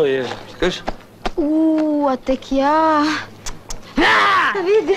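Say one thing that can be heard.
A young woman speaks loudly and with animation.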